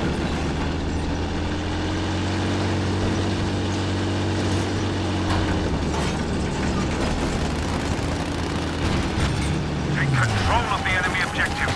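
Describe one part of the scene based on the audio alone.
A tank engine rumbles and its tracks clatter steadily.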